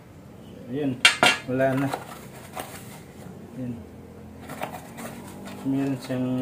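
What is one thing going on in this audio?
A cardboard box rustles and flaps as it is opened.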